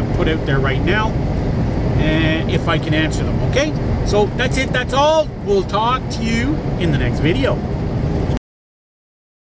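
A middle-aged man talks animatedly close to the microphone.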